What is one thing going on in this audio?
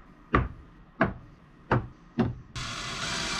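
Metal hardware knocks against a wooden board.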